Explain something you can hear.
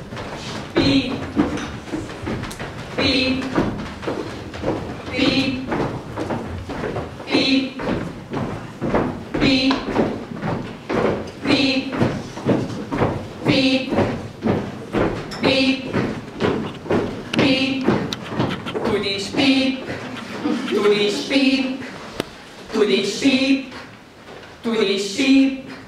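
A choir of young women sings together in a room with a slight echo.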